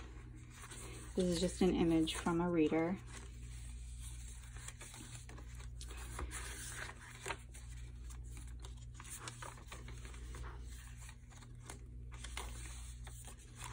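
Paper pages rustle softly as they are turned.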